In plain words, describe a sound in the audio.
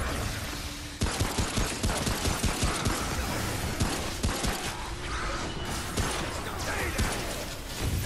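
Pistol shots fire in quick succession.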